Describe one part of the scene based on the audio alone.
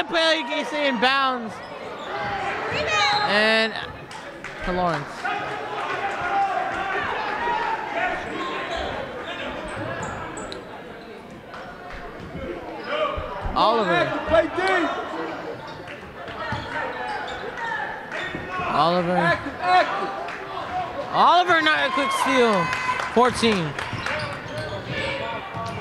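A crowd murmurs and cheers in the stands.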